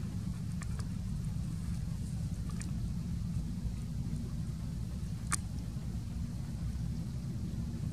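A small monkey scratches and taps at a coconut husk.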